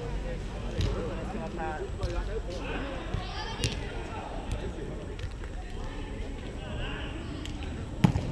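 Several young men call out and talk in an echoing space.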